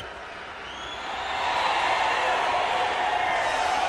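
A large crowd cheers and roars, swelling louder.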